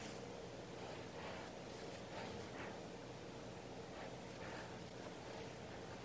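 Thread rustles softly as it is pulled through cloth.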